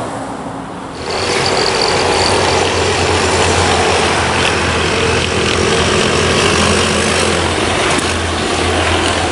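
A loader engine rumbles steadily nearby.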